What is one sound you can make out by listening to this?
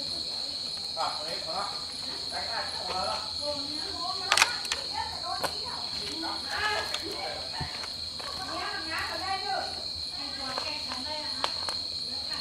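A young man talks calmly, close by.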